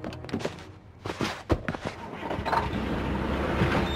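Cardboard boxes thump as they are stacked.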